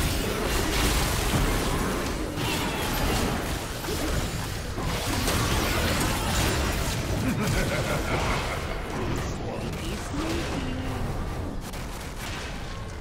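Game spells crackle and explode in a busy fight.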